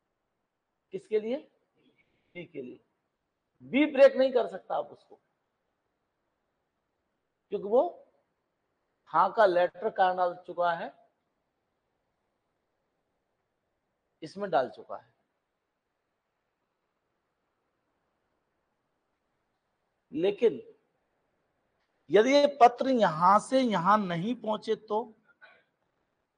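A middle-aged man lectures calmly into a close microphone, in short bursts with pauses.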